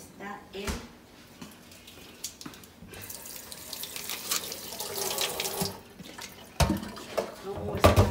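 A spatula stirs liquid in a metal pot, scraping and swishing.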